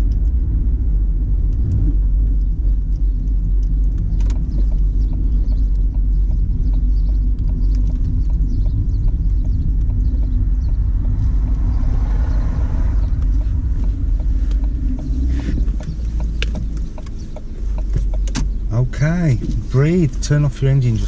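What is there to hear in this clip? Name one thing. A car engine hums steadily with road noise while driving.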